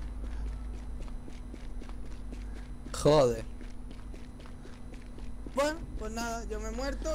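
Footsteps run quickly on asphalt.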